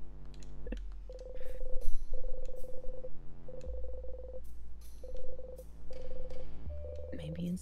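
Soft, rapid electronic blips tick in quick bursts.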